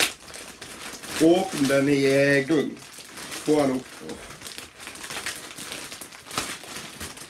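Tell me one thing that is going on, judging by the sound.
Plastic wrapping crinkles and rustles as it is torn open.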